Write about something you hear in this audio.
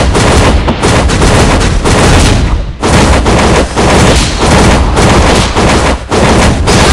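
Loud crashing hits and blasts from a video game battle ring out in quick succession.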